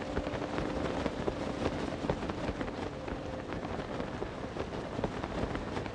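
Wind rushes steadily past during a fast glide through the air.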